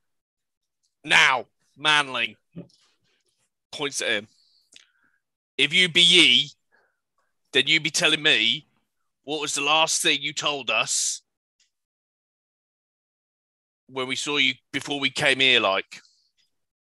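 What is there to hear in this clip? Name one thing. A man speaks with animation through a microphone in an online call.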